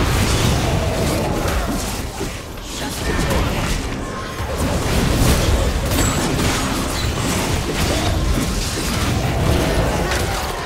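Game attacks clash and hit with sharp impacts.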